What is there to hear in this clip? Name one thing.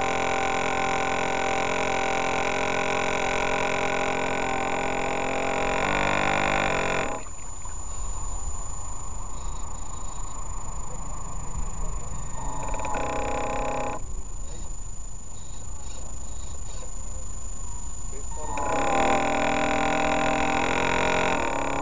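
Water splashes against a small boat's hull.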